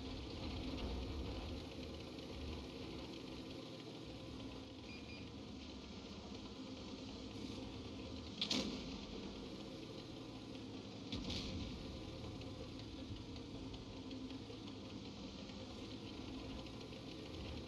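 Tank tracks clatter over the ground.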